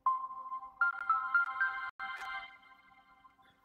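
A phone plays a short startup chime.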